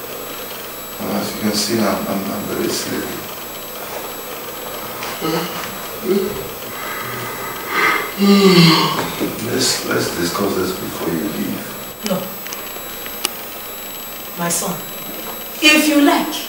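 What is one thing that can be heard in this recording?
A man groans and sobs nearby.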